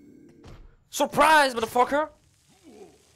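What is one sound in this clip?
A creature shrieks as the blow strikes it.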